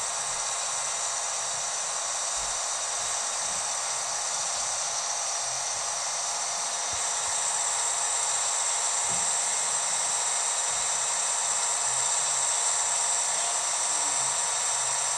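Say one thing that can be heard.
A truck engine drones steadily as it speeds up on the road.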